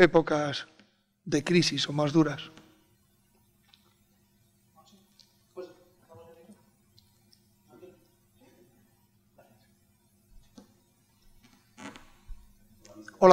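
A man speaks calmly into a microphone, with short pauses.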